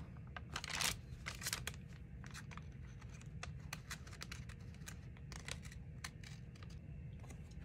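A hand rubs and taps softly on a paper page.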